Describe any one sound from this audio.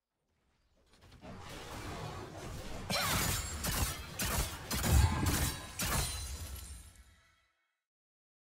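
Video game spell blasts and impacts crash rapidly during a fight.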